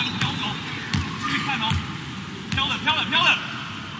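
A volleyball bounces on a hard floor.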